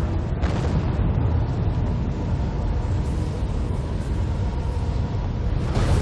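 Water rushes down a waterfall with a low, steady roar.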